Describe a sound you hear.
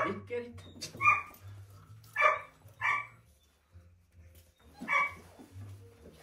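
A small dog yelps a few times.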